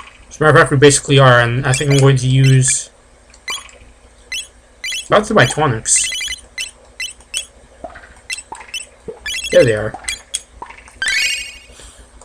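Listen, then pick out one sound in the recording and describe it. Short electronic menu blips tick now and then.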